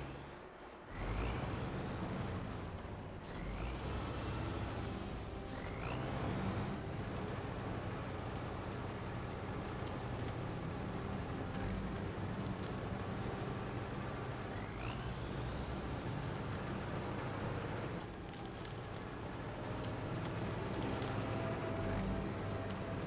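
A truck engine rumbles and strains as it climbs.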